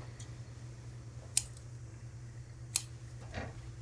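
Scissors snip through fabric.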